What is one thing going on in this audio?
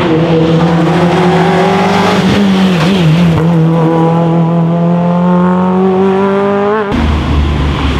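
A rally car engine revs hard and roars past at high speed.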